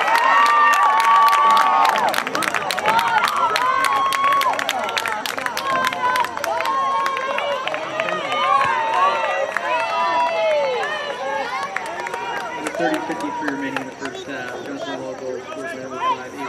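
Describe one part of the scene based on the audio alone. Young women scream and cheer excitedly nearby.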